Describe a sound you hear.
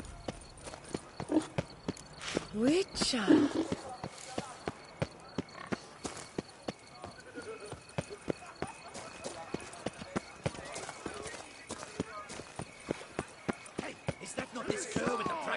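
A horse gallops with quick, regular hoofbeats on cobblestones.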